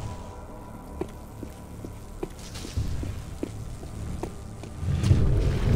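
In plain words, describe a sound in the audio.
Footsteps run quickly across a hard stone floor.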